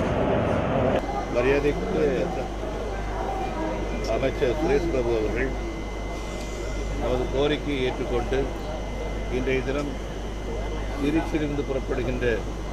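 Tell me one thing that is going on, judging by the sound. An elderly man speaks calmly into microphones close by.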